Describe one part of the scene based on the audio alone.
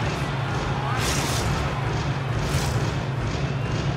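Skate blades scrape across ice.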